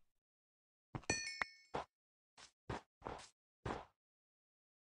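A pickaxe chips at stone with short knocks.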